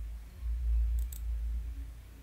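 A computer mouse clicks twice.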